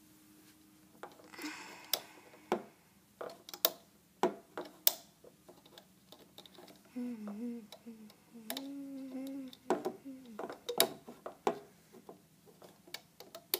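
Plastic pegs click and clatter close by.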